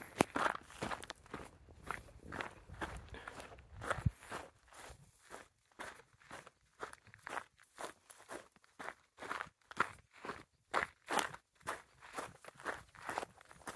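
Footsteps crunch on a cobblestone path.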